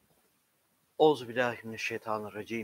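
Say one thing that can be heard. A middle-aged man reads aloud in a chanting voice close to a microphone.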